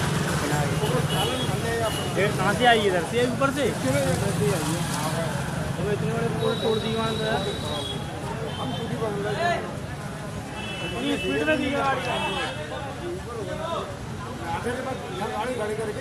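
A crowd of men talk and call out loudly nearby, outdoors.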